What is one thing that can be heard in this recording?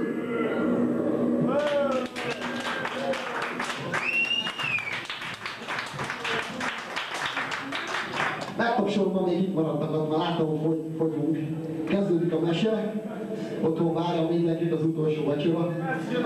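A rock band plays loudly through amplifiers.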